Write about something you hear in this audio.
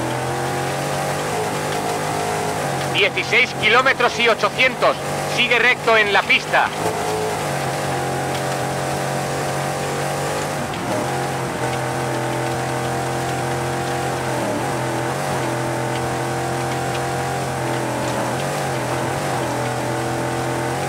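A rally car engine roars steadily at high revs.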